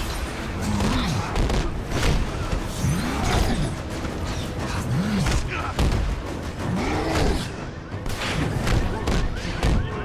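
Metal clangs and crashes under heavy impacts.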